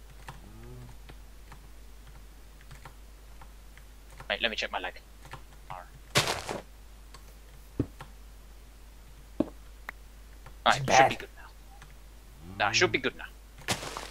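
Sword strikes land with short, sharp thuds.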